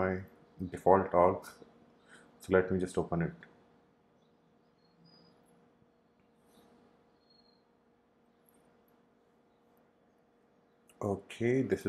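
A man talks calmly and close into a microphone, with pauses.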